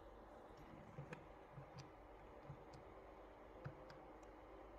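Calculator buttons click softly as they are pressed.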